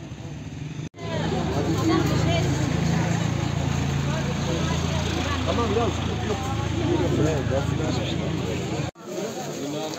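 A crowd of men and women chatter loudly all around.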